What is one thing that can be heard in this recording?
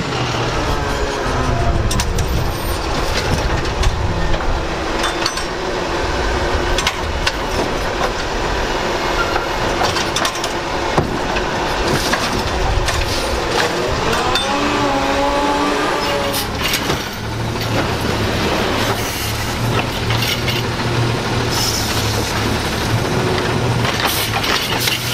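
A garbage truck's diesel engine rumbles nearby.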